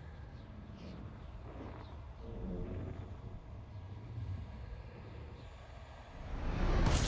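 A spaceship's engine rumbles low and steadily, then swells louder at the end.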